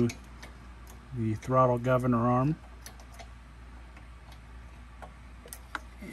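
Small metal parts click softly as a hand moves them.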